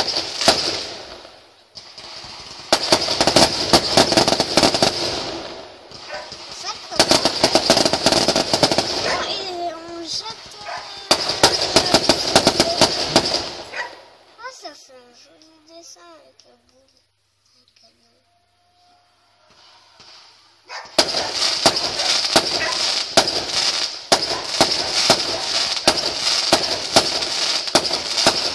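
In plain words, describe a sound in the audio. Fireworks crackle and pop rapidly in bursts outdoors.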